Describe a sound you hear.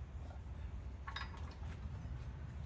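A metal pin clicks and clinks as it is pulled from a hitch.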